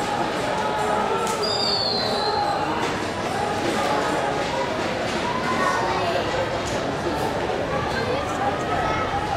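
Young men shout and call to each other across an open field.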